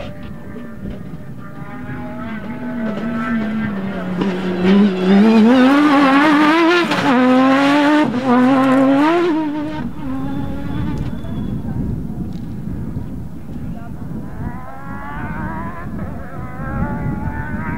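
Tyres crunch on loose dirt and gravel.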